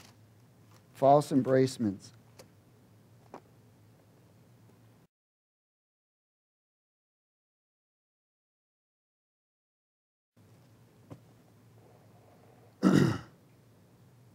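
A middle-aged man speaks briefly into a microphone, with long pauses.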